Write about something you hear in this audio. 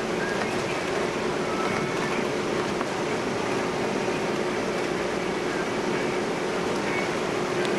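A ship's engine drones steadily inside a cabin.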